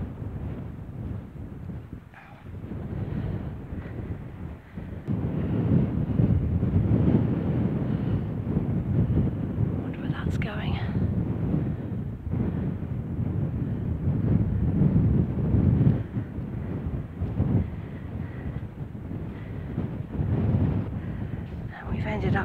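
Wind gusts roar outdoors, rising and falling.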